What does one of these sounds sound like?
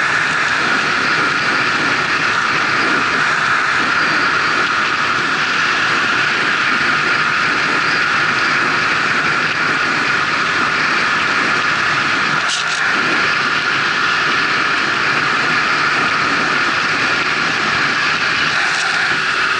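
A car's engine hums steadily.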